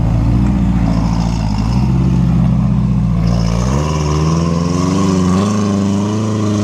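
An off-road buggy engine rumbles and revs as it climbs over rocks.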